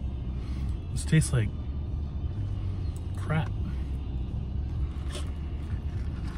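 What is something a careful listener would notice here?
A man slurps a drink through a straw.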